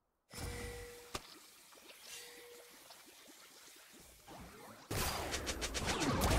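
Game weapons clash with sharp hits.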